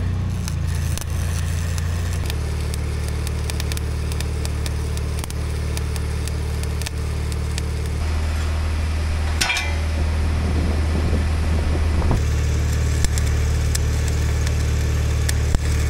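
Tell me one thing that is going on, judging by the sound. An electric welder crackles and sizzles in short bursts.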